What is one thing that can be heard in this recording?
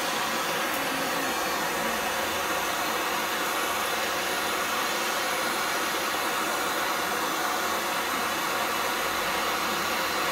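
A gas torch flame roars and hisses steadily.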